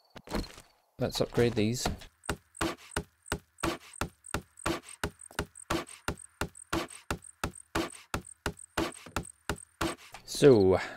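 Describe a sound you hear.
A hammer knocks rapidly and repeatedly on wood.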